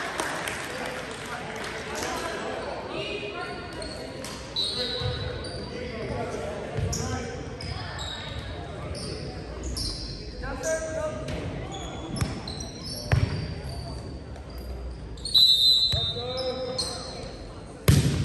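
Young men call out to each other in a large echoing gym.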